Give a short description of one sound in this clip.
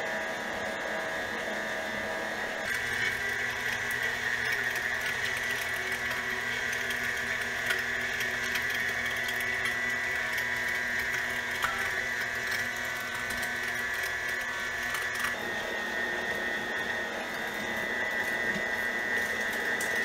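An electric mixer motor whirs steadily with a grinding hum.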